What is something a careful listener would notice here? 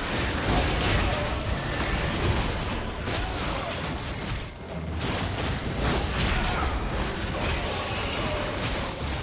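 Fantasy game spell effects crackle and boom in a fight.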